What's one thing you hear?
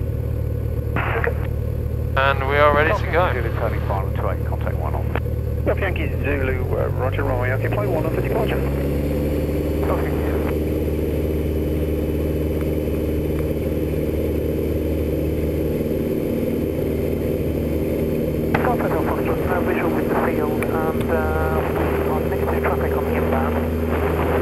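A young man speaks calmly through a headset intercom.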